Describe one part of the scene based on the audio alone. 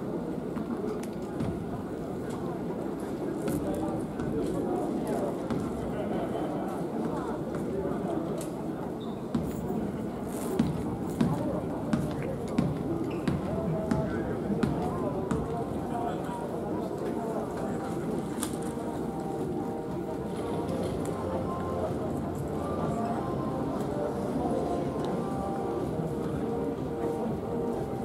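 Young men talk quietly nearby in an echoing hall.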